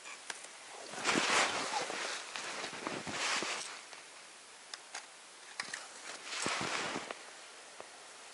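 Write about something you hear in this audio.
Footsteps crunch in snow close by.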